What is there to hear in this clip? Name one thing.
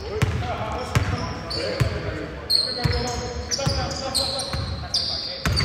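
A basketball bounces repeatedly on a hard court in a large echoing gym.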